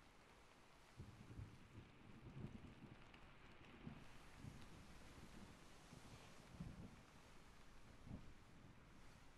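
A soft brush sweeps and rustles close against the microphone.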